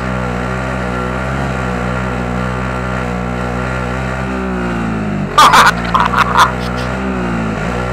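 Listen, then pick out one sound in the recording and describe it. A quad bike engine hums steadily as it drives.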